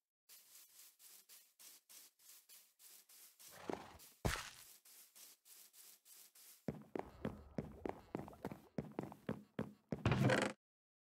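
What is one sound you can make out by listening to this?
Footsteps patter steadily over grass and wooden boards.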